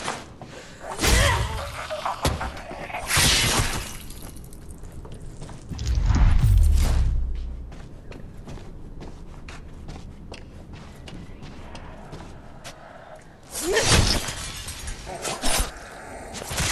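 A heavy blade hacks into flesh with wet, thudding blows.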